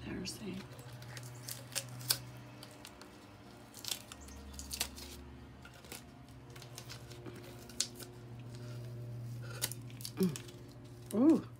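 Tape crinkles and rustles as it is peeled off.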